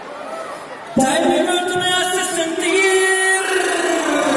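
A man sings through loudspeakers in a large echoing arena.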